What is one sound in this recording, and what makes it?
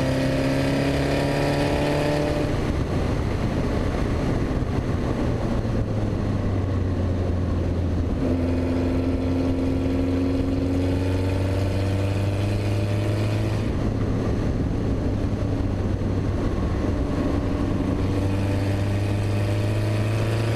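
A racing car engine roars close by, rising and falling in pitch as it shifts gears.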